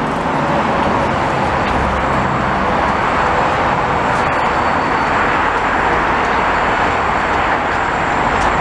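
A freight train rumbles along the tracks below.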